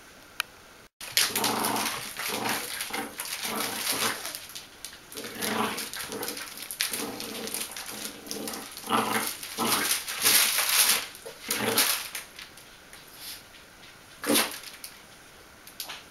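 A soft toy rustles and thumps as a small dog shakes it.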